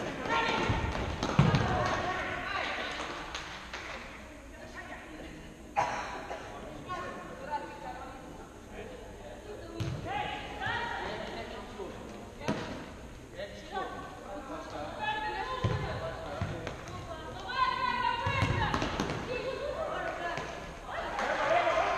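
A ball thuds off players' feet now and then.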